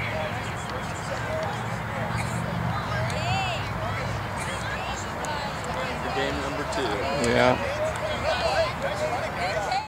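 Children chatter and call out as they shake hands.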